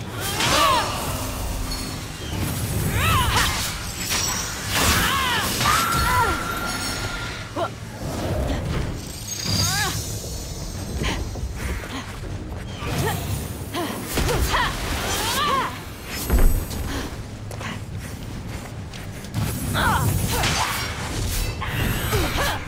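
Blades swoosh through the air in quick swings.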